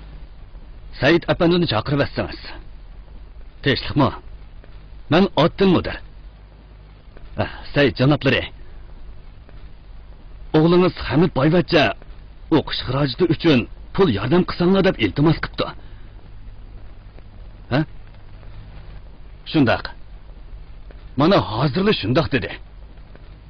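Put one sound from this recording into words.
A man talks on a telephone in short, calm phrases.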